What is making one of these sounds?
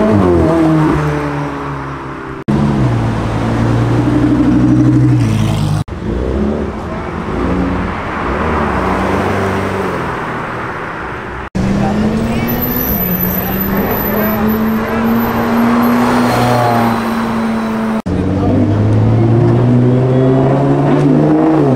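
Engines rev up and down between gear changes.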